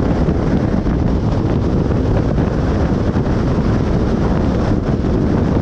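Tyres roar steadily on asphalt.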